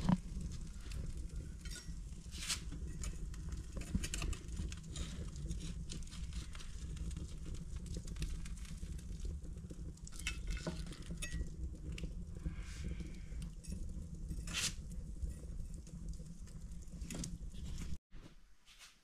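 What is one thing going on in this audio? Metal tongs clink against a grill and a plate.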